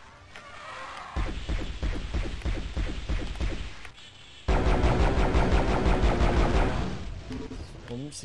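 Magic blasts from a game weapon fire in quick bursts.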